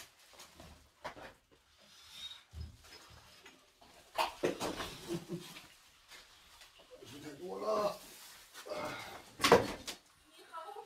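Objects clatter and thump as a man moves things about.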